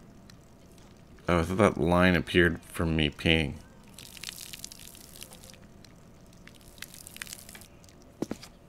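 A stream of liquid splashes onto a hard floor.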